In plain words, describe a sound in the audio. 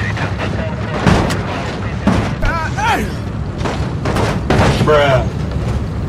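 Vehicles crash and crunch against each other.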